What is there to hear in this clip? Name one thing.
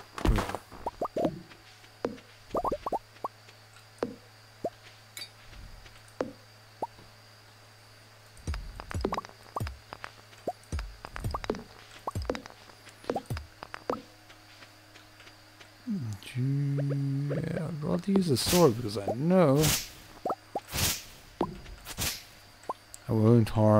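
A young man talks casually and close into a microphone.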